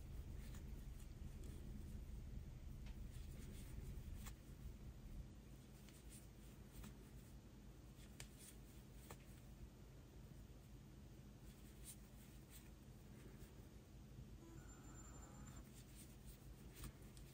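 A metal crochet hook clicks softly against yarn.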